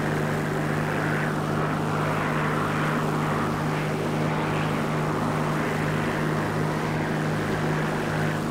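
Propeller engines drone steadily and loudly.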